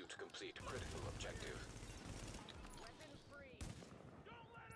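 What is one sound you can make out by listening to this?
Gunshots crack and echo nearby.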